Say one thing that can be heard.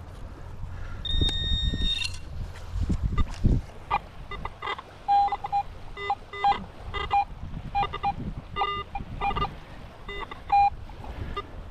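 A metal detector beeps in short, pitched tones.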